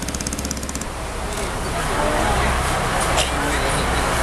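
Water splashes as people wade through a flood.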